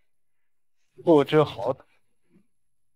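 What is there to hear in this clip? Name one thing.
A young man speaks dismissively.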